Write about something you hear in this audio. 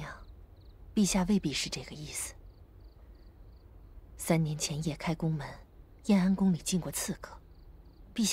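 A second woman speaks with animation, close by.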